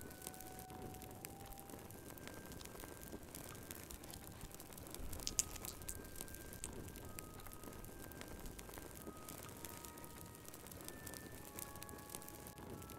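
A fire crackles and pops softly.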